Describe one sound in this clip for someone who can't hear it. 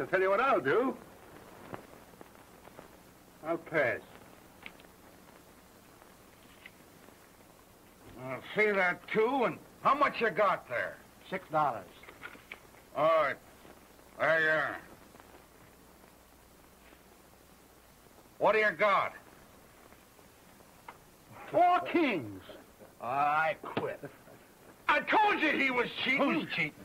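Men talk in short, gruff exchanges, heard through an old, thin-sounding recording.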